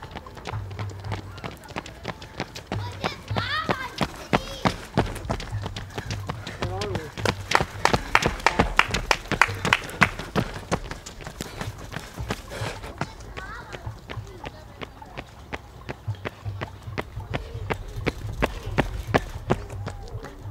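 Running shoes slap rhythmically on a paved path close by.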